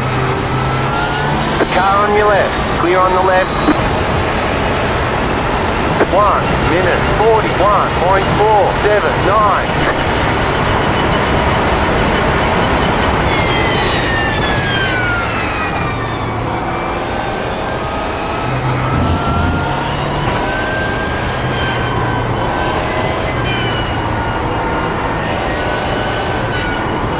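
A racing car engine roars at high revs, its pitch climbing and dropping with gear changes.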